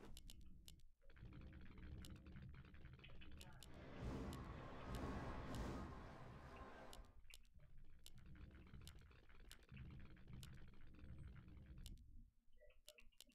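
Game battle sounds clash and crackle.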